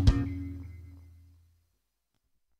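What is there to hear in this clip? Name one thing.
An electric guitar chord rings out and slowly fades.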